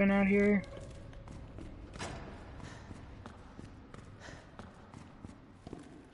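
Footsteps run on a hard concrete floor.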